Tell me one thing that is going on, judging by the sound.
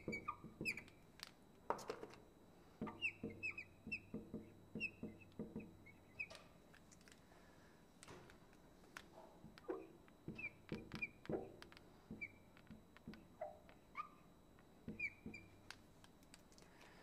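A marker squeaks and taps on a glass board.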